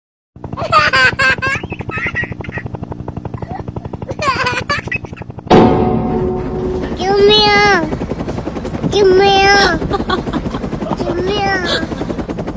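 A helicopter's rotor thumps in a fast, steady beat.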